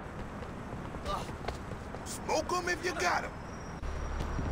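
A second man talks with animation.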